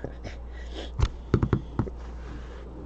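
Cards tap and knock against a table.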